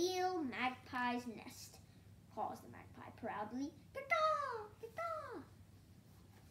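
A young boy reads aloud nearby with animation.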